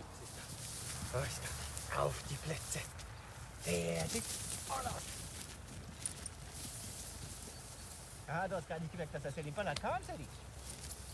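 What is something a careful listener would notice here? A man calls out to dogs outdoors.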